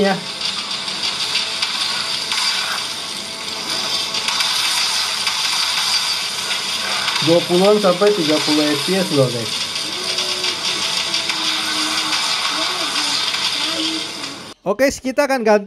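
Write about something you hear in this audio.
Game music and sound effects play from a phone speaker.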